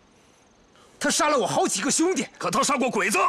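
A man speaks angrily up close.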